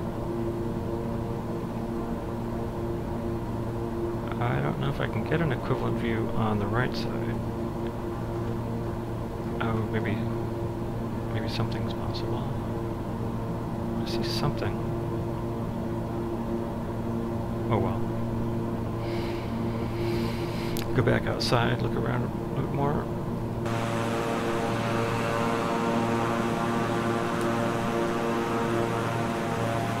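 Aircraft engines hum steadily.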